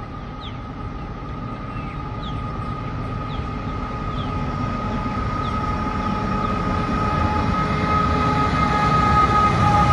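A diesel freight train engine rumbles and drones as it approaches, growing steadily louder.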